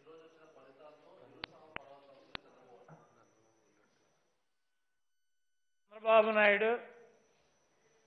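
A man speaks into a microphone in a calm, measured voice.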